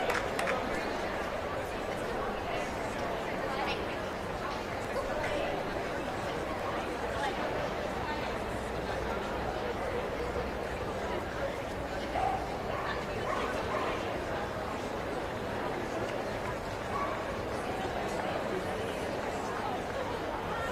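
A crowd murmurs steadily in a large echoing hall.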